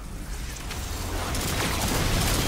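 Guns fire and energy blasts crackle nearby.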